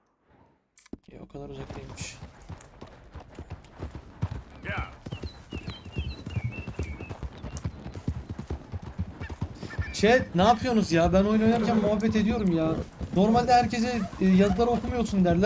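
A horse's hooves clop steadily on a dirt trail.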